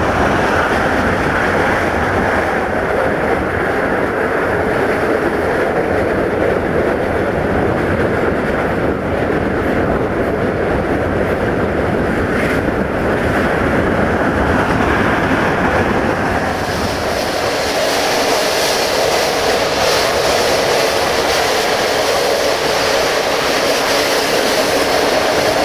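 A train rumbles and clatters along the rails at speed.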